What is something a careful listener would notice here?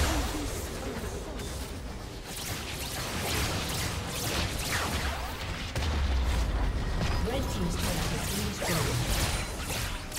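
Magic blasts and explosions crackle in a fast fight.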